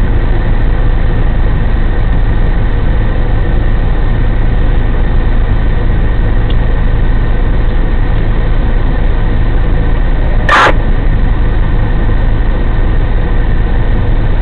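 A diesel engine idles with a steady low rumble nearby.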